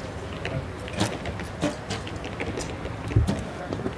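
An arrow is released from a bow with a sharp snap.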